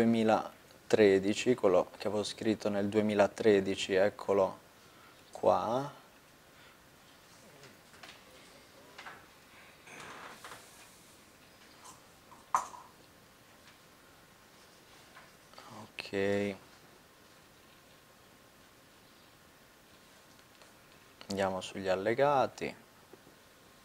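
A man speaks calmly nearby, in short bursts with pauses.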